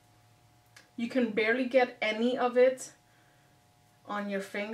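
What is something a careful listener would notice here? A woman talks calmly and close up.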